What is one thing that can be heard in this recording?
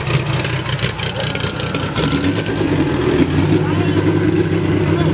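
A motorcycle engine hums nearby.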